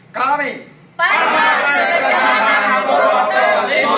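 A group of men and women shout together loudly, close by.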